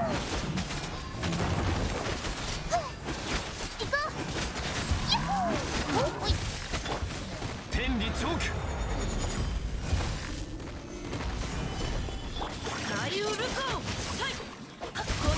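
Magic blasts and impacts crash and boom in quick bursts.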